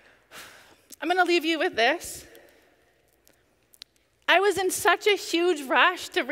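A woman speaks with feeling into a microphone.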